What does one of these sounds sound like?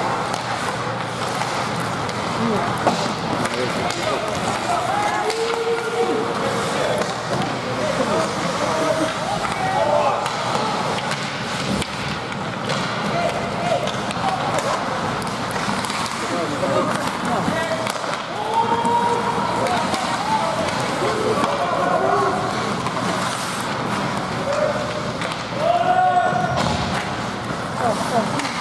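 A crowd of spectators shouts and cheers from a distance.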